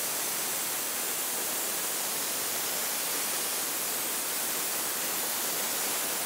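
A plasma torch cuts through steel with a loud, steady hiss.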